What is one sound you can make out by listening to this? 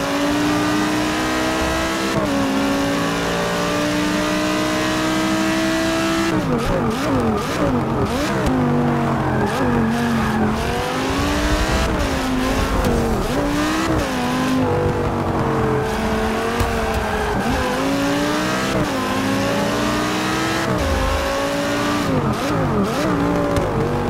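A racing car engine roars at high revs, rising and falling as it shifts gears.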